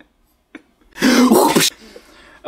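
A young man shouts playfully.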